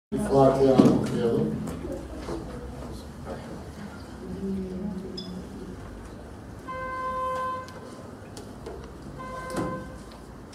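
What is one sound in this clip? An elderly man speaks with animation through a microphone, heard over loudspeakers in an echoing room.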